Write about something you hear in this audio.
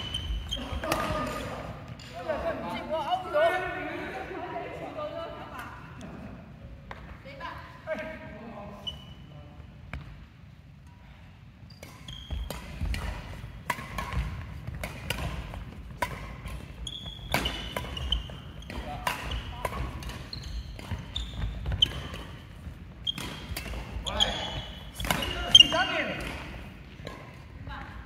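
Adults talk and call out nearby, echoing in a large hall.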